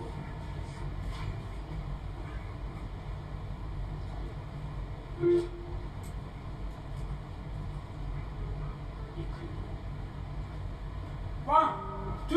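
An electric guitar plays short notes.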